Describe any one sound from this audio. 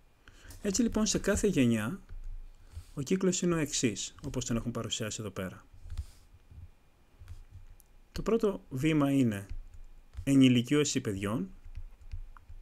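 A young man explains calmly, close to a microphone.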